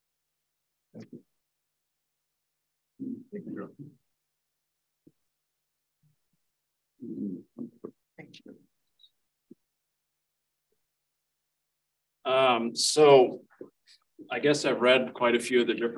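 A man speaks calmly through a microphone, in short bursts and then at length.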